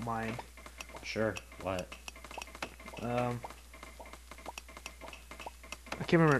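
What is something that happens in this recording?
Short game menu clicks tick over and over.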